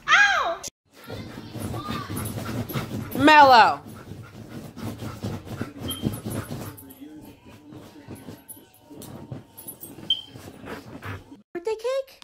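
A dog paws and digs at bed covers.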